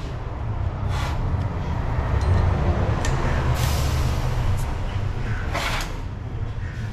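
Metal parts click and scrape against each other on a bench.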